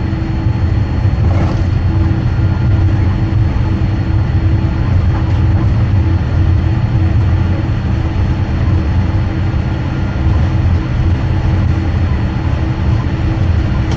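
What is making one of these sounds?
A vehicle engine hums low and steady as it drives.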